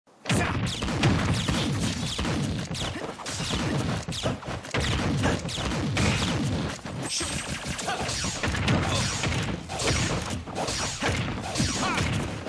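Energy blasts crackle and zap in a video game.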